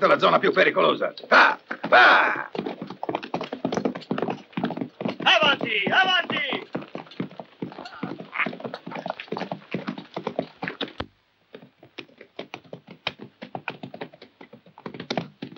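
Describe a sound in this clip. Horses' hooves clop and thud on dry ground.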